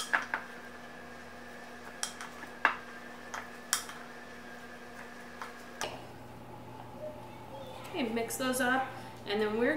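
A wooden spoon stirs and scrapes food in a bowl.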